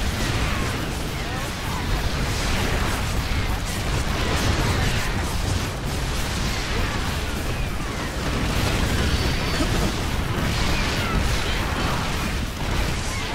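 Laser fire and explosions from a battle in a video game.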